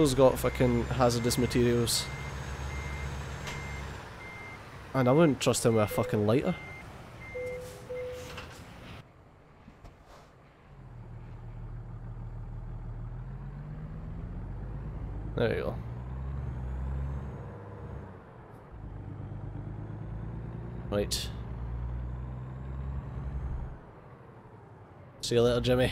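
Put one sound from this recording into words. A truck engine rumbles and hums steadily.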